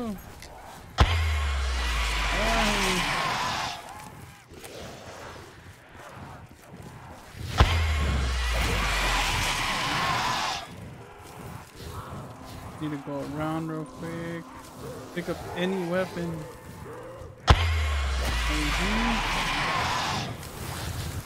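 Explosions boom and roar with a deep rumble.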